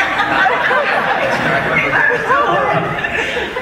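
A man laughs near a microphone.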